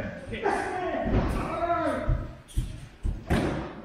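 Bodies thud onto padded mats.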